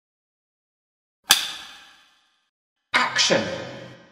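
A clapperboard snaps shut.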